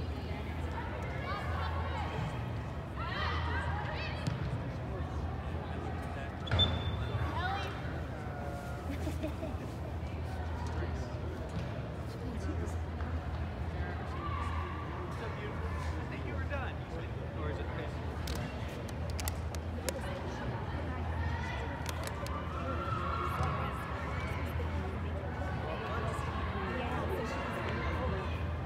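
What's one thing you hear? Young women shout to each other from a distance in a large echoing hall.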